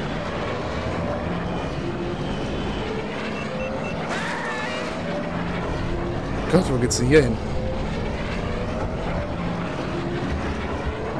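Racing pod engines whine and roar steadily.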